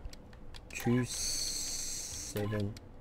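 Keypad buttons beep as a code is entered.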